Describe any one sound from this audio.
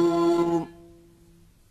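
An elderly man sings a long held note into a microphone, which then stops.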